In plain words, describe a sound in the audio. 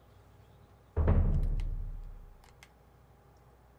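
A video game menu opens with a deep booming sound.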